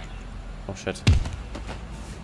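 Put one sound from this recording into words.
A heavy blow lands with a dull thud.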